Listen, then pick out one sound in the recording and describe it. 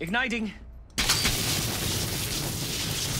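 A loud explosion blasts and roars.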